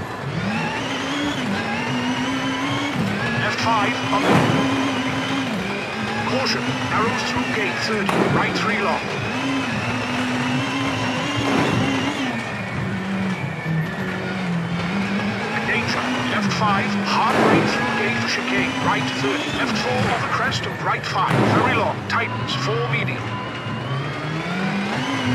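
Gravel crunches under fast tyres.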